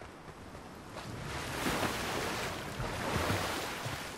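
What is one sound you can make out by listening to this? Water splashes as a figure runs into it.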